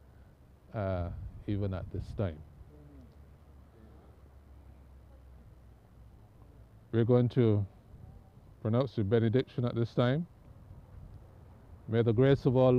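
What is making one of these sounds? An elderly man speaks slowly and solemnly into a microphone outdoors, with long pauses.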